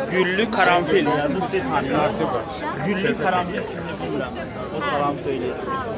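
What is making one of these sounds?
An elderly man talks with animation close by.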